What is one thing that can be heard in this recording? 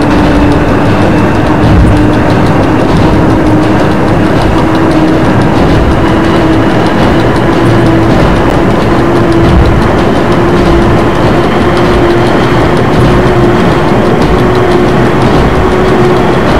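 A train's electric motor hums steadily with a slowly rising whine.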